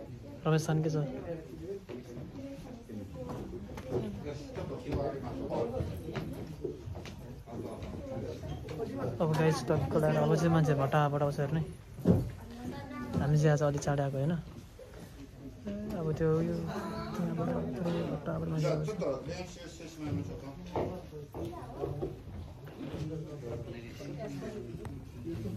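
A young man talks close by in a calm, quiet voice.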